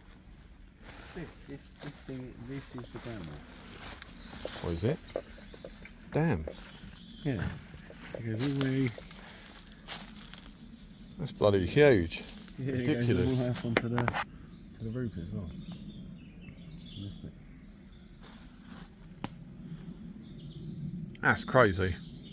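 A young man talks calmly and close by, outdoors.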